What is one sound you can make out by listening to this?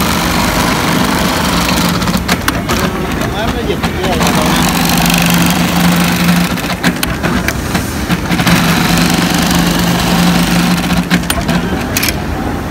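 An industrial sewing machine whirs and rattles as it stitches in bursts.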